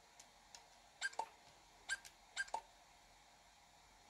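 Buttons on a handheld console click.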